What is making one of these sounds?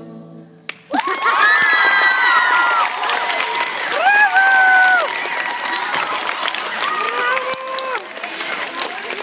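A young girl sings through a microphone in a large echoing room.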